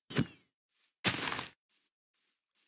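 Grass rustles sharply as it is broken.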